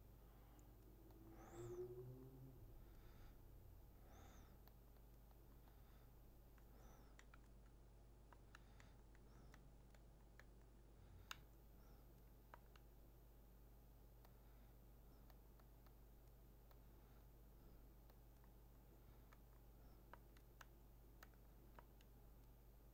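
Soft electronic blips sound as a menu cursor moves.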